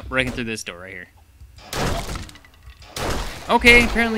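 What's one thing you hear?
A wooden door is battered and splinters.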